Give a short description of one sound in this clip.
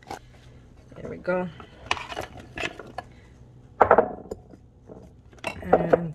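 Cucumber pieces tumble and clatter out of a bowl into a plastic colander.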